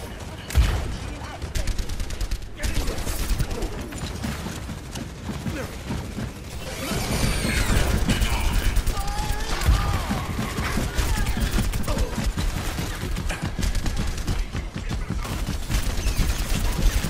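A video game gun fires rapid bursts of energy shots.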